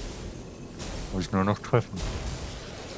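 A laser gun fires in short bursts.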